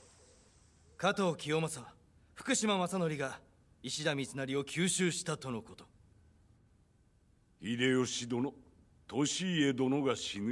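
A man speaks gravely in a deep voice, close by.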